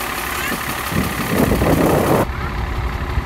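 Air hisses in short bursts from a hose into a tyre.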